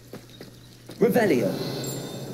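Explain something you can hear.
A spell crackles and bursts with a magical whoosh.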